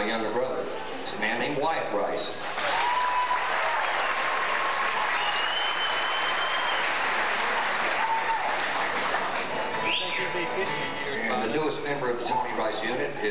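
Acoustic guitars strum and pick.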